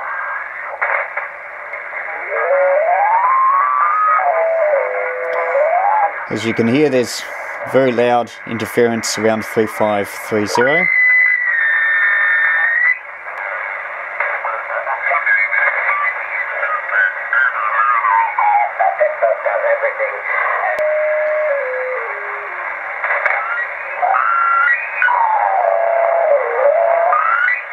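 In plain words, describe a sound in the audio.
A radio receiver hisses with static as it is tuned across the band.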